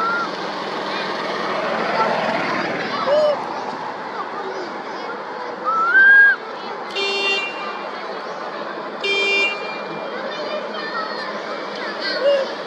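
A baby monkey squeaks in short high cries.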